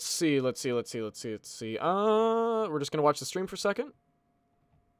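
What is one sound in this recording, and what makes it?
A young man speaks with animation close to a microphone, drawing out one word.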